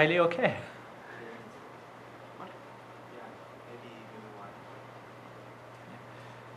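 Several men talk quietly in a group.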